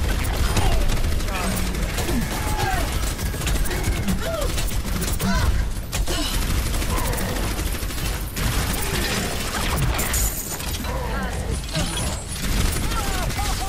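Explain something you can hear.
A video game's rapid-fire energy weapon shoots.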